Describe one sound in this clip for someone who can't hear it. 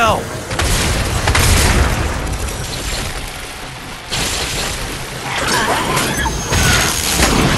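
A sword slashes and strikes with heavy impacts.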